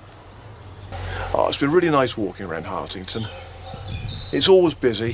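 A middle-aged man speaks calmly and close by, outdoors.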